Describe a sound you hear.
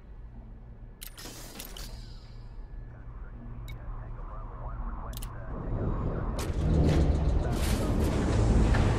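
Electronic interface clicks and beeps sound now and then.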